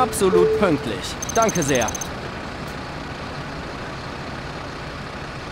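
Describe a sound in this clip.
A bus engine idles with a low, steady hum.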